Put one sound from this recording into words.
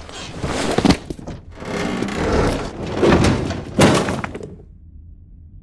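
A wooden ladder creaks and knocks under climbing hands.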